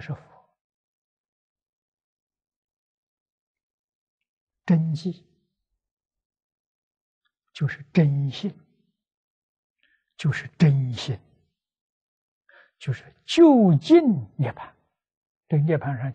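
An elderly man speaks calmly in short phrases with long pauses into a close microphone.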